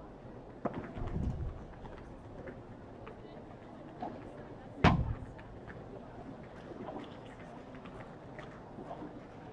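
A ball thuds off a racket and bounces during a game outdoors.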